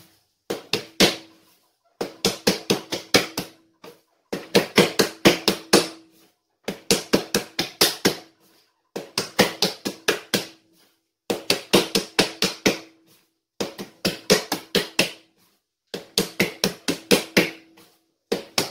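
Hands slap and thump bread dough against a countertop in quick bursts.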